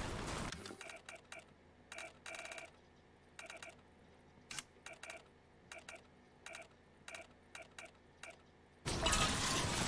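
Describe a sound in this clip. Short electronic blips sound again and again.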